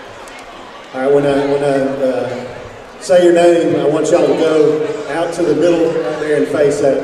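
A man speaks loudly through a loudspeaker, echoing in the hall.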